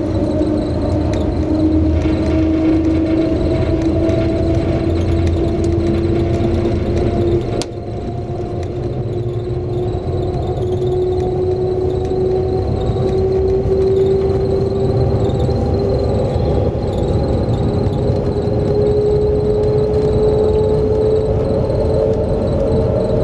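A high-speed train hums and rumbles steadily from inside the carriage, with a slowly rising whine.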